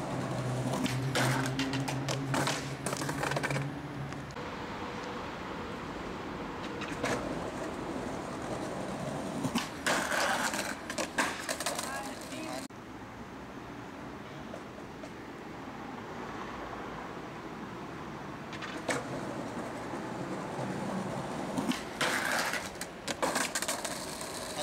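A skateboard clatters and slaps onto stone pavement.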